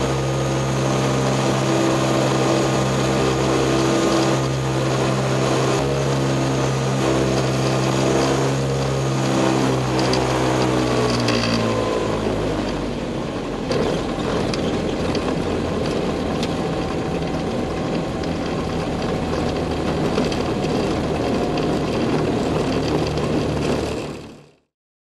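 A light aircraft engine drones steadily up close, then drops to a lower hum.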